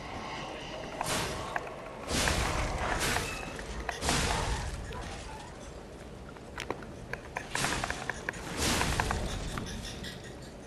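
A sword swishes and clashes in combat.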